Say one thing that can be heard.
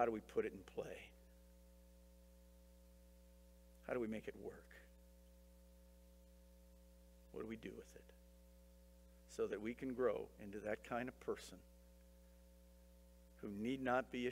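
A middle-aged man speaks calmly through a microphone in a hall, pausing between phrases.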